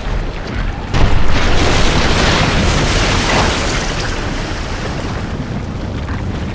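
A heavy crash booms, followed by a loud rumbling.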